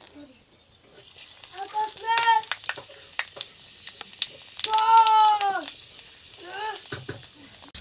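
Spices drop into hot oil and sizzle steadily.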